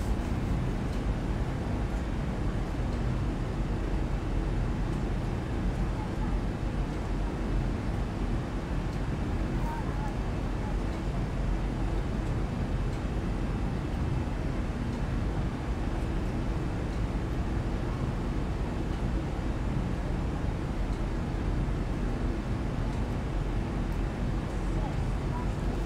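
Jet engines drone steadily, heard from inside an airliner cabin.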